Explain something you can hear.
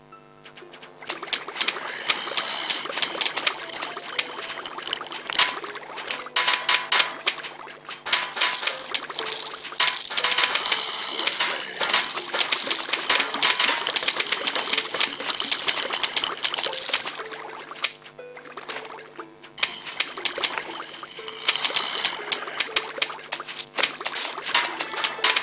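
Rapid cartoon pops of plants shooting peas in a video game.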